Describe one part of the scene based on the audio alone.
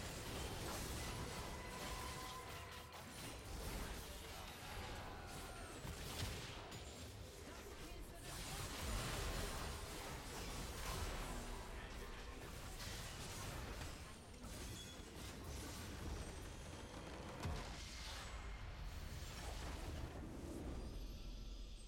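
Game spell effects whoosh, crackle and explode in quick bursts.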